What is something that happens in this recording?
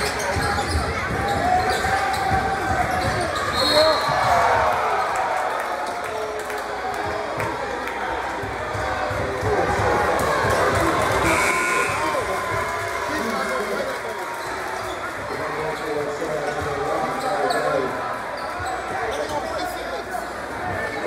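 A crowd in a large echoing gym chatters and cheers throughout.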